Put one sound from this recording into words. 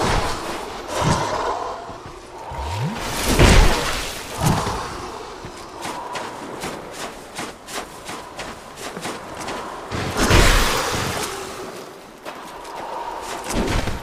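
Heavy weapon blows land with loud crashing thuds.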